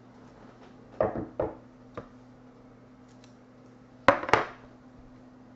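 Cards knock and tap against a table a few times.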